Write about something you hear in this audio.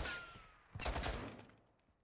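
Bullets strike metal nearby.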